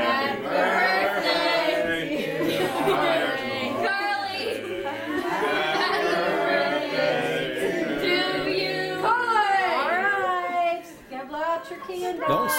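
A young girl speaks and laughs excitedly nearby.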